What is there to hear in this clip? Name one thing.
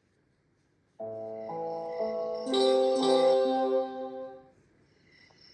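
A short musical jingle plays.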